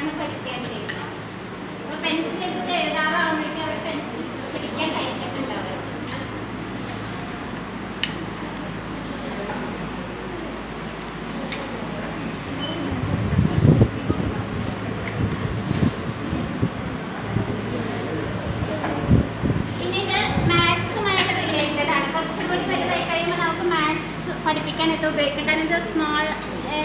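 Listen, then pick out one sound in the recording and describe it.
Young women talk and chatter among themselves in a room.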